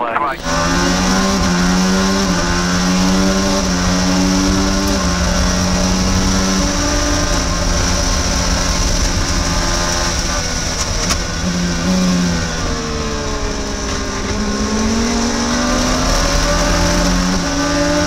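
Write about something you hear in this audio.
A racing car engine screams close by, its pitch shifting as gears change.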